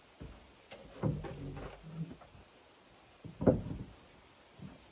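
A metal chair knocks and scrapes on wooden boards.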